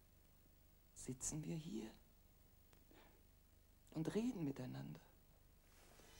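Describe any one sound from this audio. An older woman speaks with feeling, close by.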